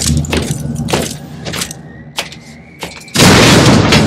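Heavy armoured footsteps clank on a metal floor.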